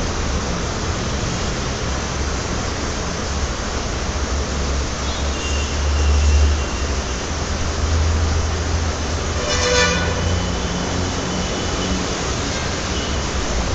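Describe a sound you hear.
A cloth rubs and squeaks across a whiteboard.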